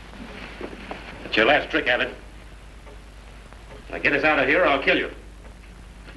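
A man speaks in short, loud bursts nearby.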